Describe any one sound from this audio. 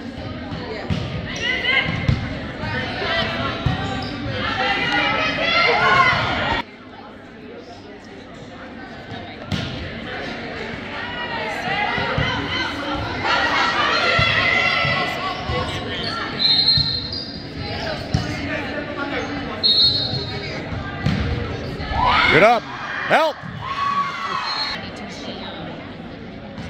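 Players and spectators shout and cheer in a large echoing gym.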